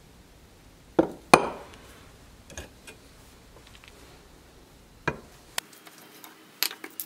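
Metal parts clink and rattle against each other.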